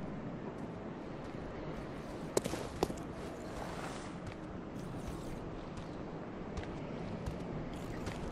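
Footsteps fall on stone steps.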